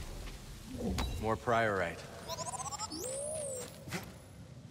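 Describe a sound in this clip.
A small robot beeps and warbles.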